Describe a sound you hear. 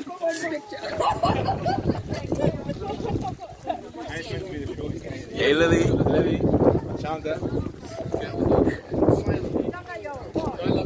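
Several men talk and laugh nearby.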